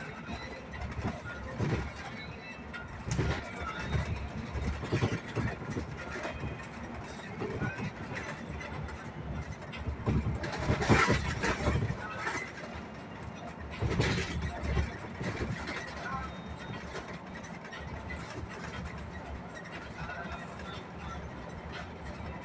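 A city bus drives along a road, heard from inside the bus.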